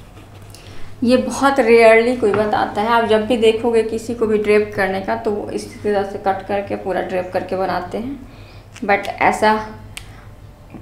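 A young woman speaks calmly and clearly to the listener, close by.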